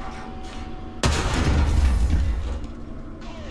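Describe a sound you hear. A tank cannon fires with a deep boom that rumbles away.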